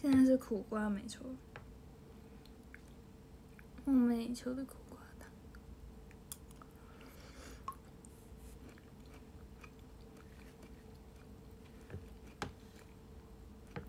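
A spoon scrapes and clinks against a bowl.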